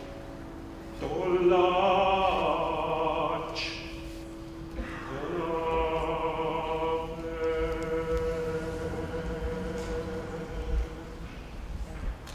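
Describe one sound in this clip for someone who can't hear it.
A man sings in a deep, operatic voice through a microphone in a large hall.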